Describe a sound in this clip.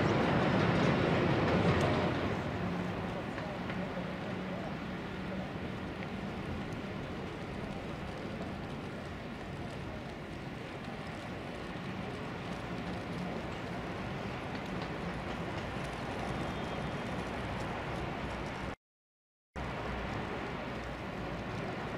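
Wind blows steadily across a wide open square outdoors.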